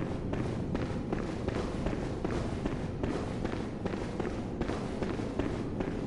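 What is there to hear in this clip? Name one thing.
Footsteps run quickly across a stone floor, echoing in a large hall.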